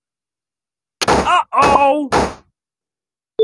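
A cheerful burst of party noise rings out as a level is won.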